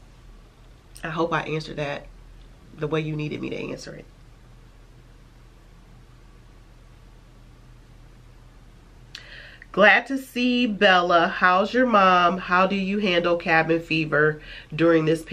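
A woman talks calmly and close to a microphone, with pauses.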